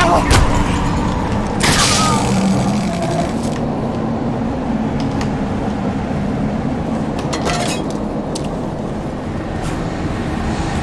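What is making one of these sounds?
Sharp blows and crashes thud in a game's combat.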